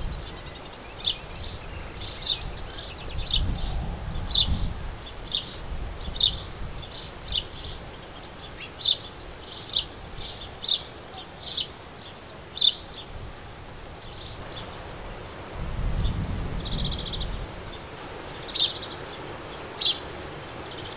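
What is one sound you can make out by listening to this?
A small bird chirps sharply, again and again, close by.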